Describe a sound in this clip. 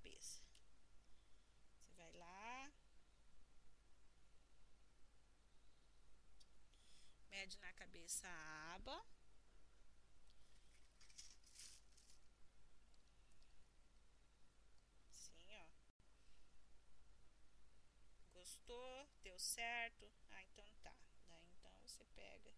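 A small plastic toy is handled with soft taps and clicks.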